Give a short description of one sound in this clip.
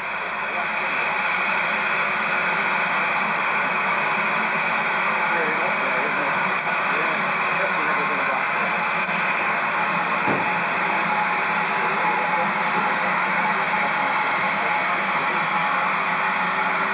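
A narrow-gauge steam locomotive vents steam with a loud hiss.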